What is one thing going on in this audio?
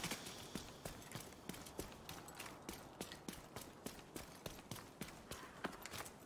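Footsteps hurry over hard ground at a steady pace.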